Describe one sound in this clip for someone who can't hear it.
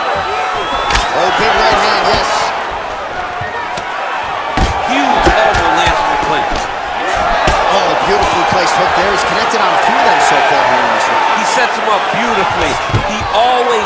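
Punches land on a body with heavy thuds.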